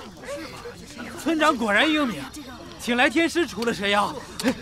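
A crowd of men and women shout excitedly.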